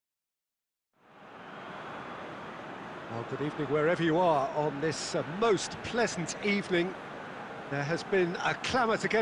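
A large stadium crowd murmurs and roars steadily in the distance.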